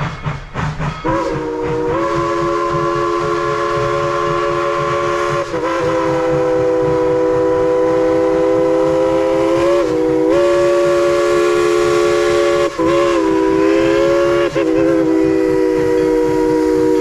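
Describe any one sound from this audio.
A steam locomotive's whistle blows long and loud, with short breaks.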